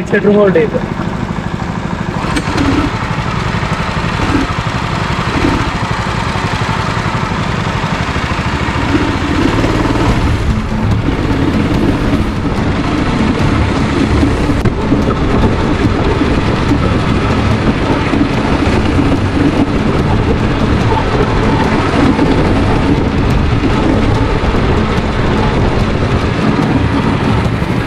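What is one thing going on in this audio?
A go-kart engine hums steadily close by and grows louder as it speeds up.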